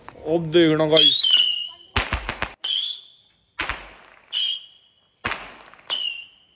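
Firework rockets whistle as they shoot up into the sky.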